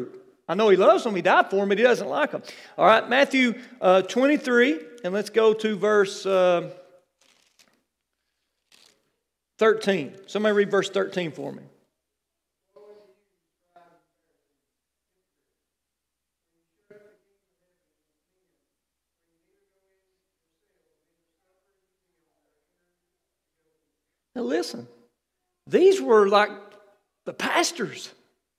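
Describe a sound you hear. A man speaks steadily through a microphone and loudspeakers, pausing now and then.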